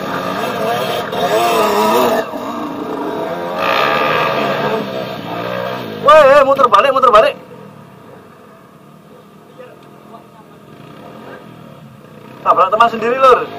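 A dirt bike engine revs hard and sputters up close.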